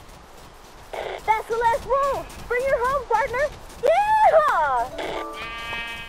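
Sheep bleat loudly up close.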